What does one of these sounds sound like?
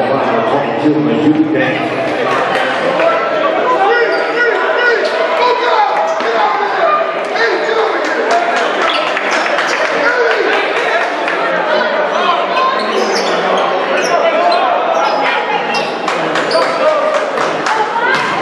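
A basketball bounces sharply off a hard wooden floor.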